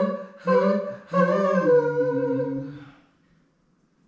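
A man sings a sustained note into a microphone, close by.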